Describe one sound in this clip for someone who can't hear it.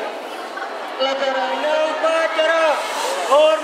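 A young man sings loudly close by.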